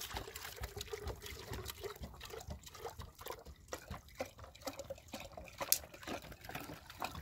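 Water pours from a plastic jug into a metal pot, splashing and gurgling.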